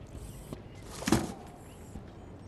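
A cardboard box thumps down onto the floor.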